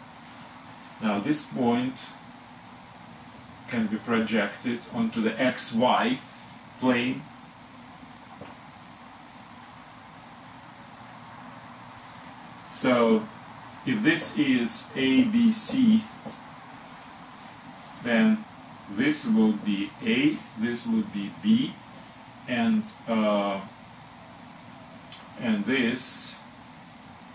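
A middle-aged man speaks calmly and explains nearby, with pauses.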